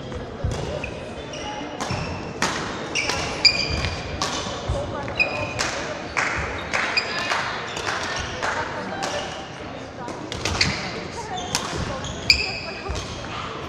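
Shoes squeak sharply on a hard sports floor.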